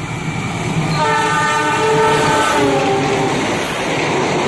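A train horn blares loudly.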